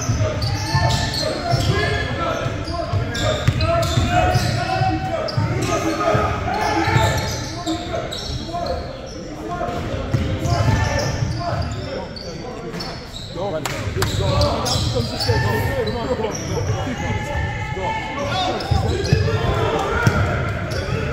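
Young men shout and call out across the gym.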